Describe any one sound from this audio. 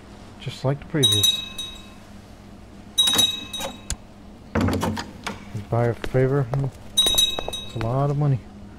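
A short bright chime rings out from a game.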